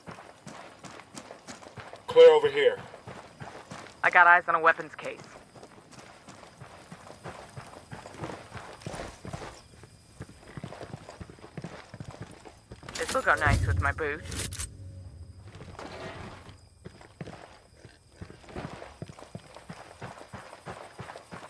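Boots tread on the ground.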